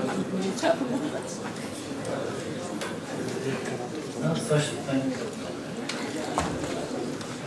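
A knob clicks as it is turned.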